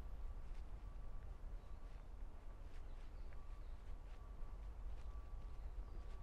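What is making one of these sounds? Footsteps pass by on a paved path.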